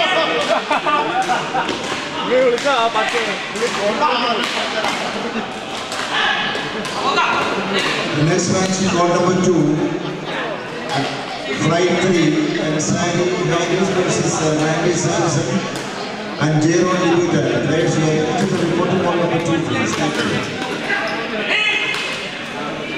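Rackets smack a shuttlecock back and forth in quick rallies.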